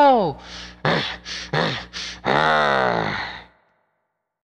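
A young man raps in a sung, pitch-bending voice close to a microphone.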